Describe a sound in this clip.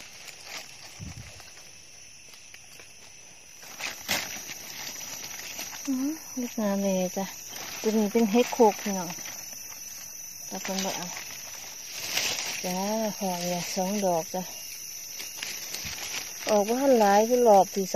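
Dry leaves rustle as hands move through them.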